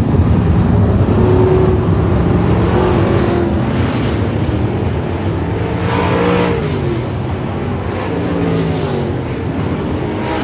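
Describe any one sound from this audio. A car engine revs up and down as it passes close by.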